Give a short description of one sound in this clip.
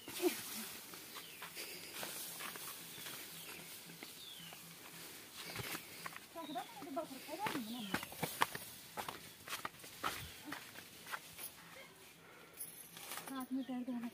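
Leafy fodder rustles and swishes as a bundle is carried.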